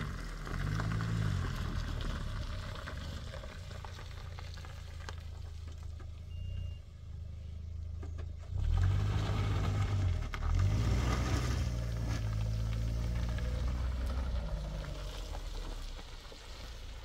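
A car engine revs and strains as it climbs a muddy slope.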